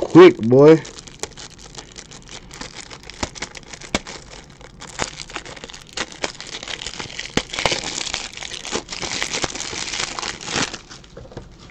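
Plastic wrapping crinkles and rustles as a pack is opened.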